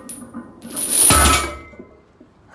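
Weight plates thud onto a rubber floor as a barbell is set down.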